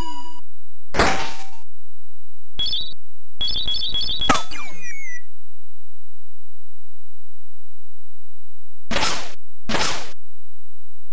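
Electronic noise bursts crackle like explosions.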